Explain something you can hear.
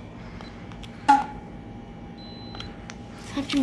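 An electronic thermometer beeps briefly.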